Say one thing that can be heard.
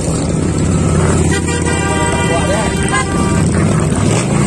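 A large motorcycle engine throbs up close.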